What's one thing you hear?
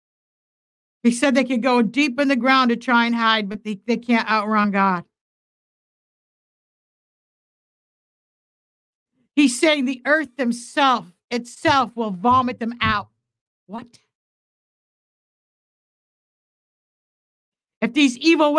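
A middle-aged woman speaks with feeling into a close microphone, pausing between phrases.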